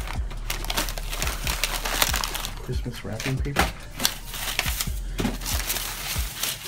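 Plastic wrappers and paper crinkle and rustle as a hand rummages through them.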